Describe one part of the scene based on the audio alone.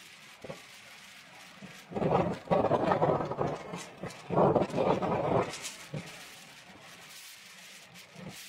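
Wind rushes steadily past an open car.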